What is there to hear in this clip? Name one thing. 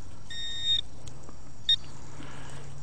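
A metal detecting pinpointer beeps in high electronic tones.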